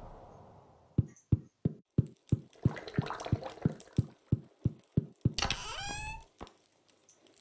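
Quick light footsteps tap steadily on a wooden floor.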